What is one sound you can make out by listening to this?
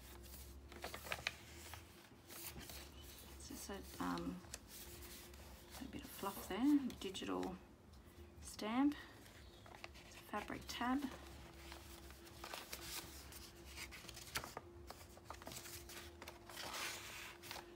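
Paper pages rustle and flip as they are turned by hand.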